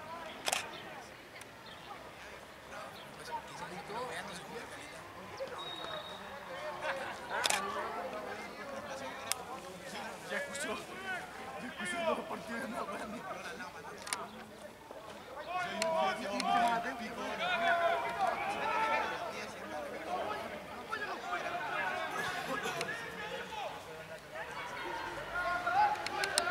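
A crowd of young men and women talks and shouts nearby outdoors.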